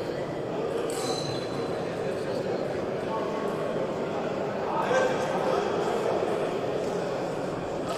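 Table tennis balls bounce and click on tables in a large echoing hall.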